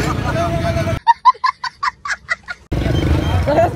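A young boy laughs loudly in short bursts.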